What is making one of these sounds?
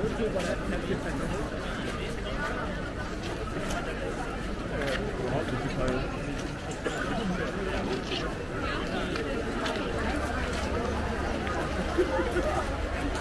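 A crowd of men and women chatters all around outdoors.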